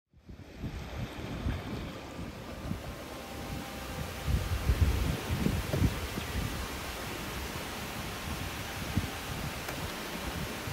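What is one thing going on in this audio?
Wind gusts blow across the microphone outdoors.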